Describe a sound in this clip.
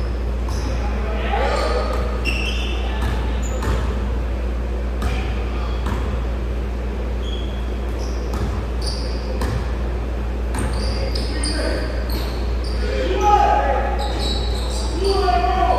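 Young men call out to each other from across the hall.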